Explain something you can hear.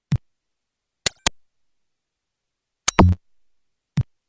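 A locked door rattles.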